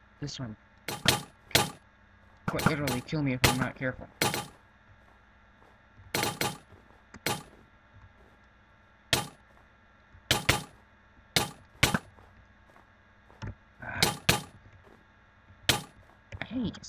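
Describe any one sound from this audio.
A bow is drawn and arrows are shot with sharp twangs, again and again.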